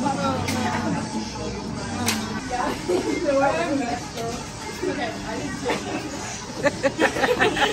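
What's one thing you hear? Young women talk excitedly nearby.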